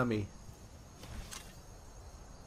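A metal weapon is drawn with a short scrape.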